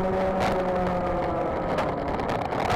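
A kart engine drops in pitch and fades as the kart slows.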